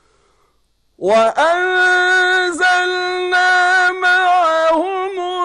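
A man chants loudly in a long, wavering sung call, heard close through a microphone.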